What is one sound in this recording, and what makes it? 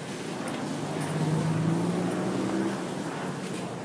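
A motorbike engine hums close by.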